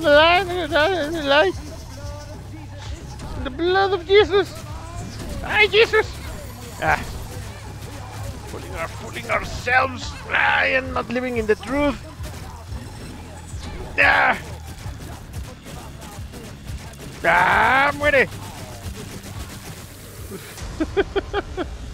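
Sound effects of a video game battle pop and splatter.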